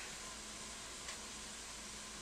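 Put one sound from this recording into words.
An egg cracks sharply against the rim of a metal pot.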